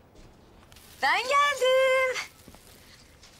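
A woman speaks cheerfully.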